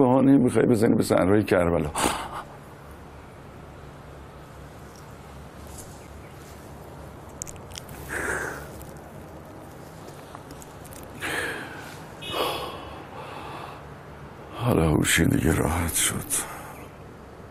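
A middle-aged man speaks in an emotional, halting voice close by.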